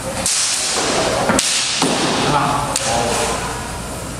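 Steel swords clash and ring sharply.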